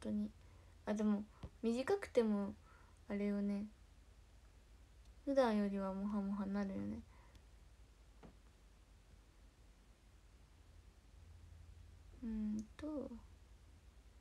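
A young woman speaks close to the microphone in short bursts, with pauses.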